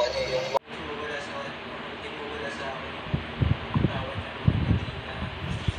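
A young man speaks quietly and emotionally through a television speaker.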